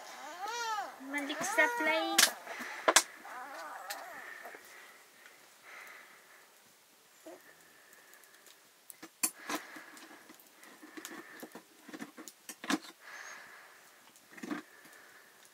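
A wood fire crackles.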